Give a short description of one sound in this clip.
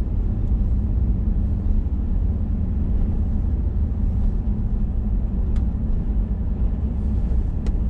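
Tyres roll steadily over a rough paved road.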